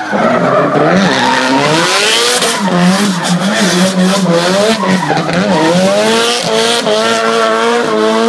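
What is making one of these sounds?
Tyres screech as a car spins and drifts close by.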